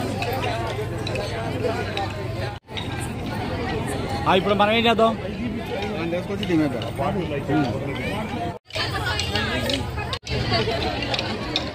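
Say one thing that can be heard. A crowd of women and men chatter loudly nearby.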